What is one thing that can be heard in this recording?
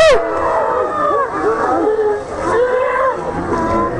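Water splashes heavily as people fall in.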